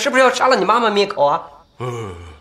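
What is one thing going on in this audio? A young man asks a question with animation, close by.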